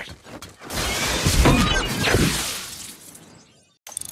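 Electricity crackles and whooshes in a rushing burst.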